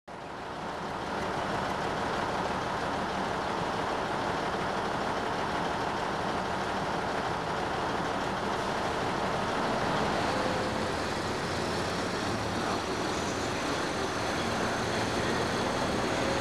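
A diesel train engine rumbles steadily close by.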